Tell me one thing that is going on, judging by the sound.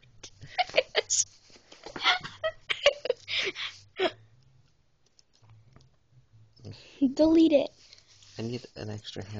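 A young woman talks and giggles close to the microphone.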